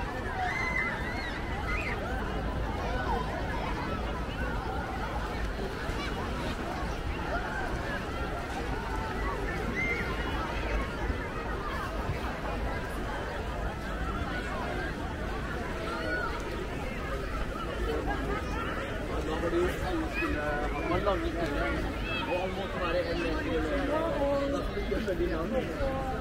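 A large crowd chatters and shouts from a distance, outdoors.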